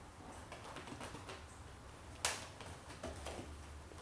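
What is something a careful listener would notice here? A kitten lands with a soft thud on a couch cushion.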